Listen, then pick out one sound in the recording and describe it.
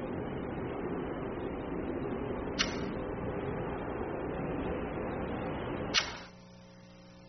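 Fingers rub and fumble against a microphone up close.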